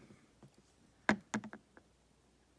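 A hard plastic case clicks and knocks as it is picked up.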